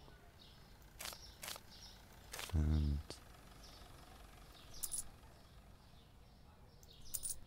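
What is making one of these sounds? Coins clink into a cash drawer.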